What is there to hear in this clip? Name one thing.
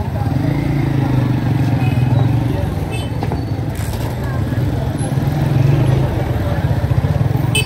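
A crowd of people chatters in a busy street.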